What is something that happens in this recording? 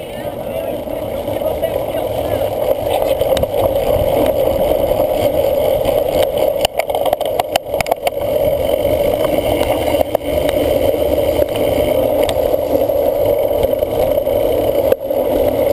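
Wind rushes past a bike-mounted microphone while riding.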